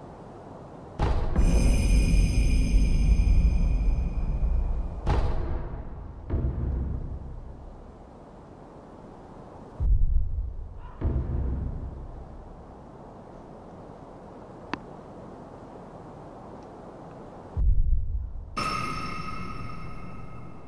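A soft chime and whoosh sound as a game message opens and closes.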